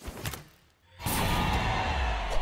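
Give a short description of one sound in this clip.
A burst of dust explodes with a loud thud.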